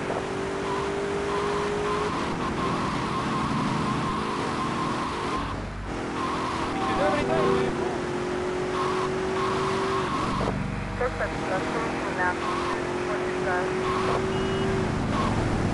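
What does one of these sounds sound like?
A siren wails steadily.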